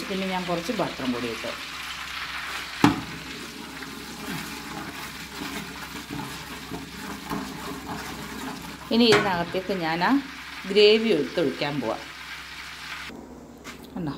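Hot oil sizzles and crackles in a pot.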